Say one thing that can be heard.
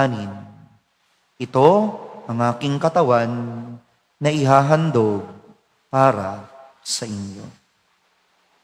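A man chants through a microphone in a large, echoing hall.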